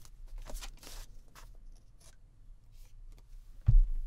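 Tape is pulled off a roll and pressed onto paper.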